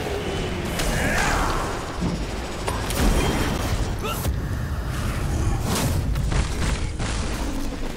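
Magic blasts burst and crackle in a game fight.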